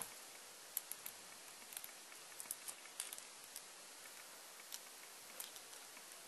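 Small pliers click softly against a metal clasp.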